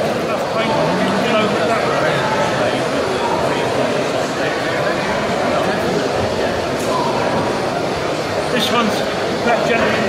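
A crowd of men and women murmurs in a large echoing hall.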